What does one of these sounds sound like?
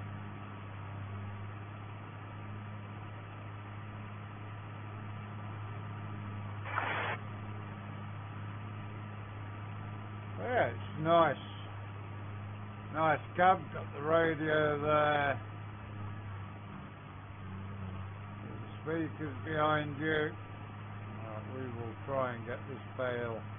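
A tractor engine hums steadily at low speed.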